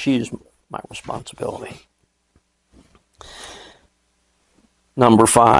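An elderly man speaks with animation through a microphone in a room.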